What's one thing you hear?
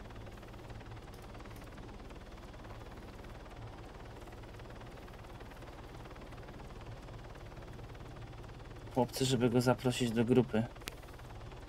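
A helicopter engine hums steadily with whirring rotor blades.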